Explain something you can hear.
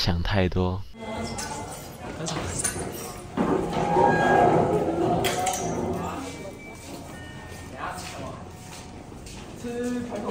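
Young people chatter nearby in a room.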